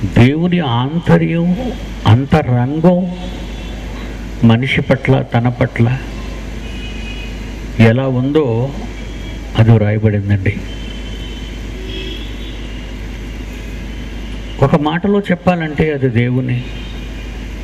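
An elderly man speaks calmly into a microphone, in short phrases with pauses.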